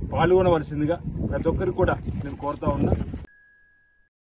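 A middle-aged man speaks calmly into a microphone outdoors.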